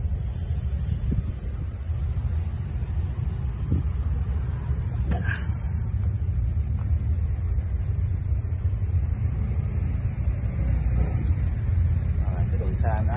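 A tractor's diesel engine idles with a steady low rumble close by.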